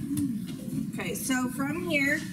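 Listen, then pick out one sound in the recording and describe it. A young woman begins speaking through a microphone.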